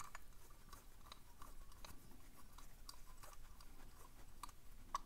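Brass keys click and scrape as they turn inside a metal padlock.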